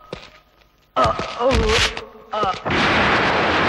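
Men shout angrily.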